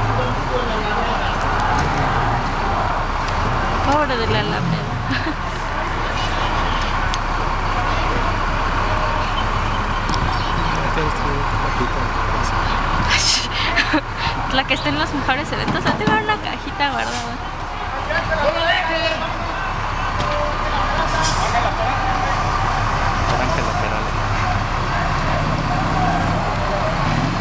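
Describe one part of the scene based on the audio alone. Traffic rumbles along a wide street.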